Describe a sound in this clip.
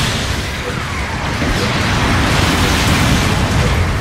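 A loud explosion bursts close by.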